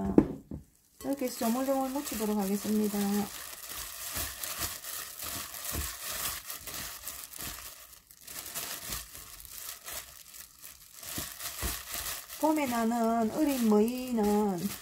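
Plastic gloves crinkle and rustle.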